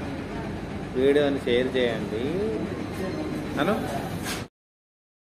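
A man speaks close by in a cheerful voice.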